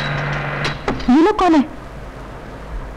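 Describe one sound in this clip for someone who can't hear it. A young woman speaks with alarm nearby.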